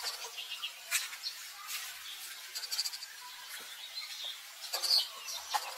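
A newborn monkey squeaks and squeals shrilly up close.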